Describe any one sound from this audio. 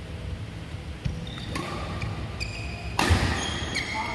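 Badminton rackets hit a shuttlecock with sharp pops in an echoing hall.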